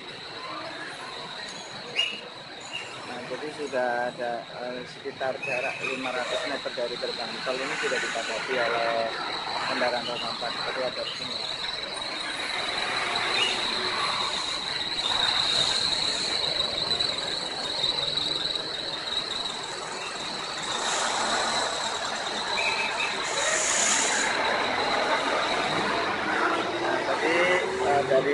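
Car and truck engines idle nearby in slow traffic.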